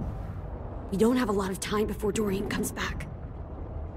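A young woman speaks tensely at close range.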